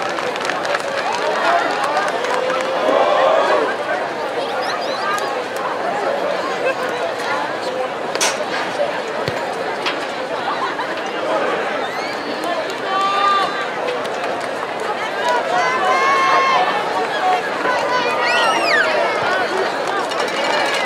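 A large crowd murmurs and chatters in an open-air stadium.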